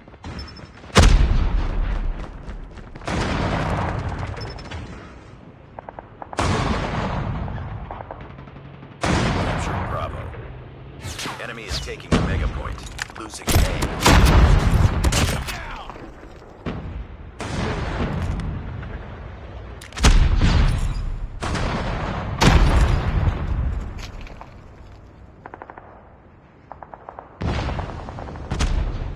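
Sniper rifle shots crack loudly and echo, again and again.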